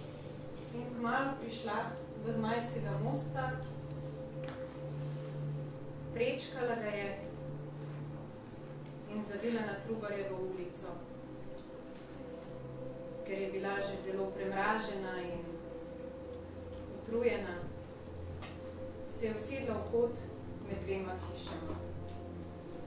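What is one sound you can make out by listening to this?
A woman speaks slowly and expressively in a large room.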